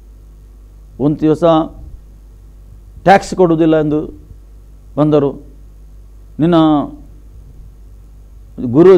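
A middle-aged man speaks calmly and closely into a microphone, in short phrases with pauses.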